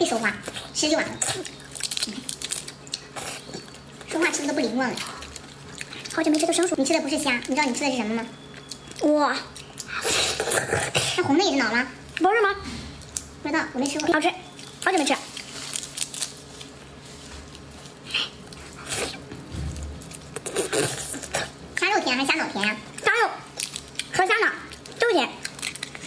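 Crawfish shells crack and squelch between a young woman's hands.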